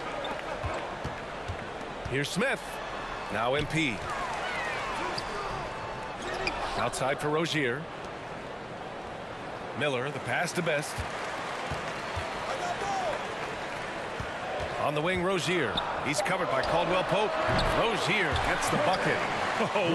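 A crowd murmurs and cheers in a large echoing arena.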